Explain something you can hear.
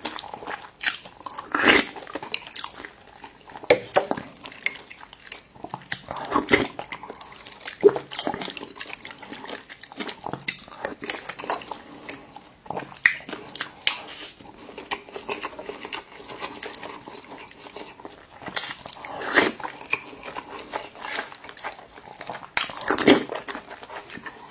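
A man slurps soup from a spoon close to a microphone.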